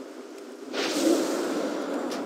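Lightning crackles sharply.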